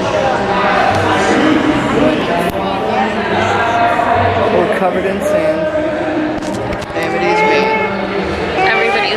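A crowd of adults chatters loudly close by.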